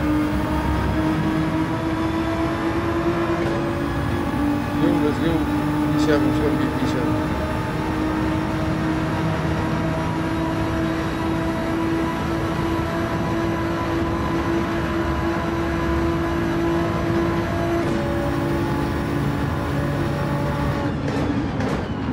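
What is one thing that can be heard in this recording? A racing car engine roars at high revs, rising as it shifts through the gears.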